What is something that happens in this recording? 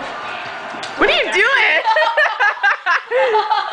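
Young women shriek and laugh loudly close by.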